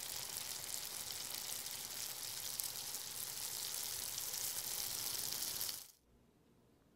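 Eggs sizzle and crackle in a hot frying pan.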